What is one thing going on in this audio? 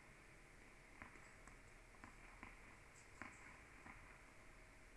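A tennis ball bounces on a hard indoor court.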